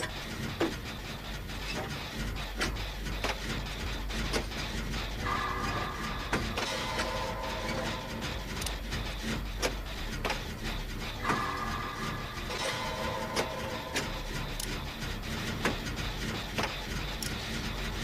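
Metal parts clank and rattle in a steady, repeated rhythm.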